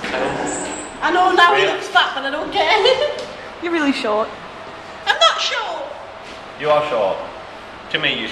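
A young woman talks playfully and laughs close by.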